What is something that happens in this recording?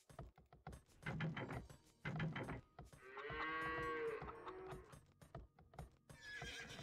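Swords clang and clash in a skirmish.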